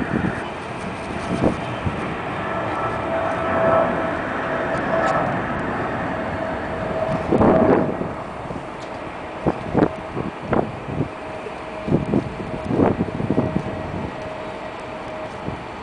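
A twin-engine jet airliner roars as it climbs away after takeoff in the distance.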